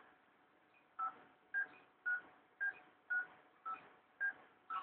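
A device beeps in an even, repeating rhythm.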